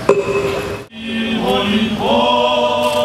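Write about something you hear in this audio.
Men chant slowly in unison outdoors.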